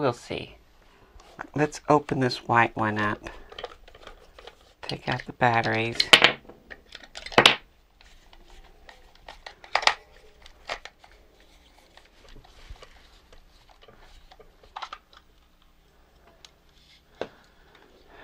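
Plastic parts knock and rattle as they are handled.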